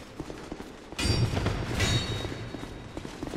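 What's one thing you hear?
A sword clangs against armour.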